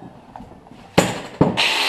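A power grinder starts up with a loud whir.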